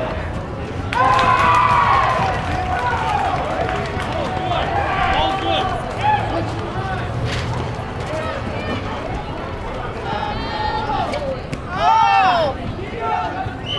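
Players' sneakers squeak on the court.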